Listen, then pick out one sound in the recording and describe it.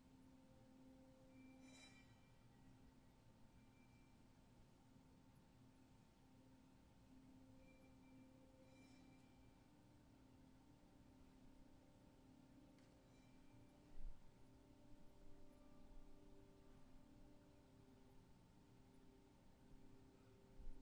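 A handbell choir rings sustained, chiming bell tones in a large, echoing hall.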